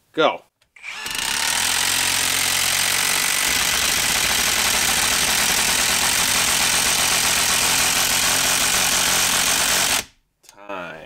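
An impact driver rattles loudly as it drives a long screw into wood.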